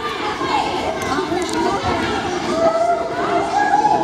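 Two young judoka scuffle and slide on judo mats.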